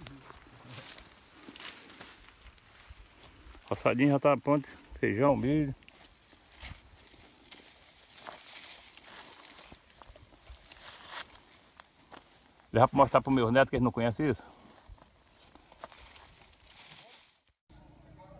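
Dry grass and twigs rustle and crackle underfoot.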